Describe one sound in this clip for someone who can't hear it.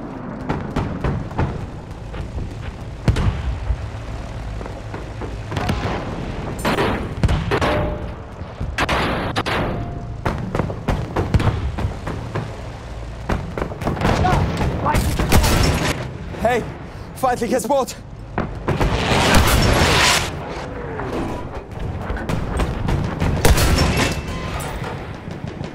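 Guns fire in loud bursts with booming explosions.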